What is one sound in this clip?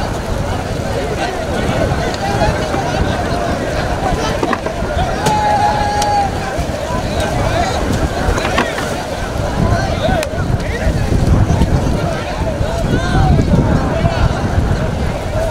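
Water splashes as many people wade through a river.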